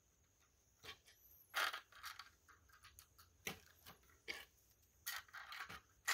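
Plastic toy bricks click and rattle as they are handled and pulled apart.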